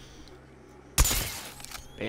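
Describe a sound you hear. An electrical charge crackles with a loud burst.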